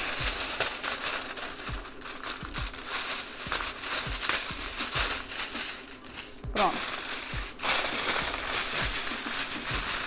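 Aluminium foil crinkles and rustles as it is folded.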